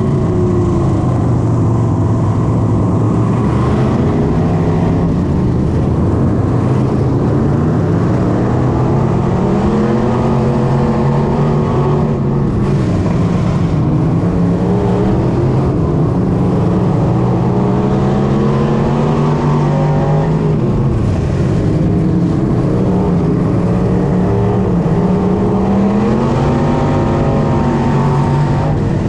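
A race car engine roars loudly close by, revving up and down.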